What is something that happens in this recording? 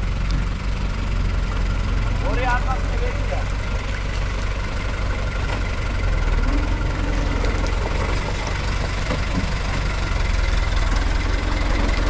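A tractor engine idles and rumbles nearby.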